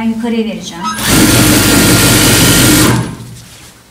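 A sewing machine whirs loudly in a fast burst.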